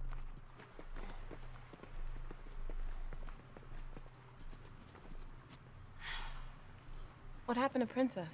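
Footsteps scuff softly on the ground.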